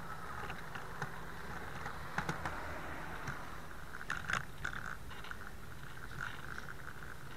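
Wind rumbles steadily against a moving bicycle.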